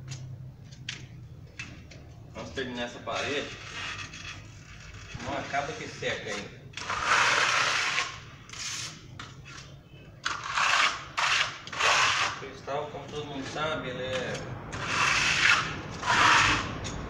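A scraper grates harshly across a plaster wall in repeated strokes.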